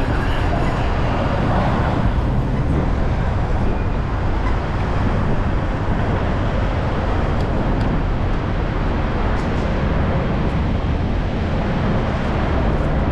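A steady murmur of a busy city echoes under a high roof.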